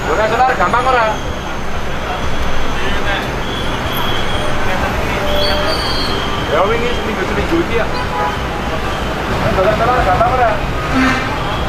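An older man asks questions calmly, close by.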